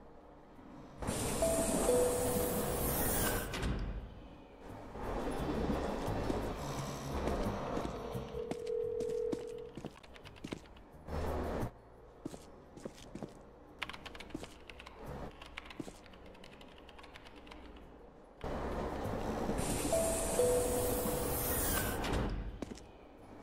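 A subway train rumbles and screeches loudly through a tunnel.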